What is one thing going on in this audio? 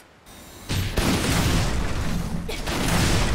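A loud rushing blast roars.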